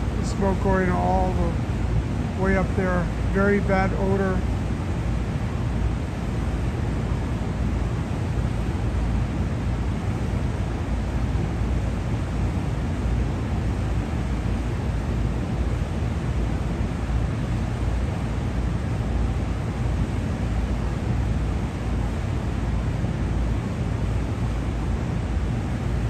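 An exhaust vent roars steadily outdoors.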